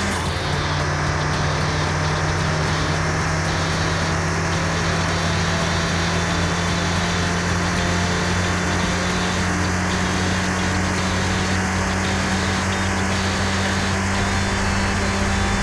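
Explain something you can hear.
Wind rushes loudly past a fast-moving car.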